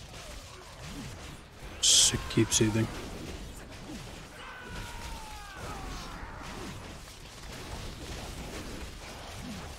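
Spell effects whoosh and crackle during a game battle.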